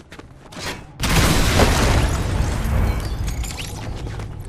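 Explosions boom and crackle loudly.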